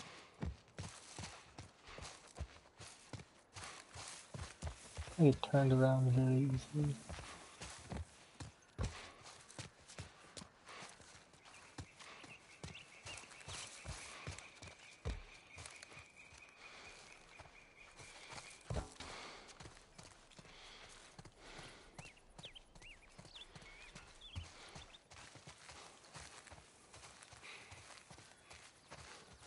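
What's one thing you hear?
Footsteps run quickly over gravel and leaves.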